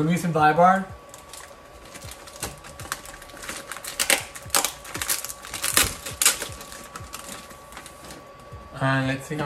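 Dishes and packets clatter and rustle as a man handles them at a counter.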